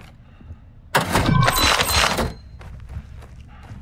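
A door creaks and swings open.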